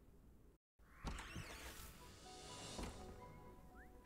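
A magic portal hums and shimmers with a bright chime.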